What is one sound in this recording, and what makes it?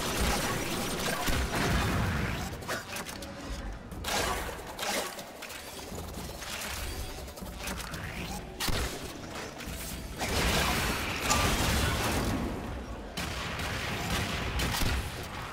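Gunfire and sci-fi weapon blasts crackle in bursts.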